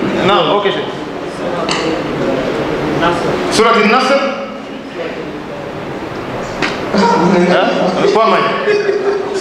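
A man speaks through a microphone in a reverberant room.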